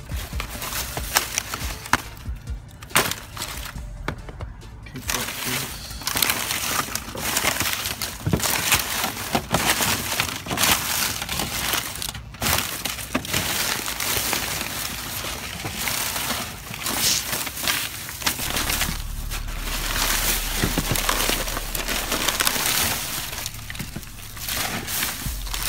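Plastic wrappers and paper crinkle and rustle as a hand rummages through them.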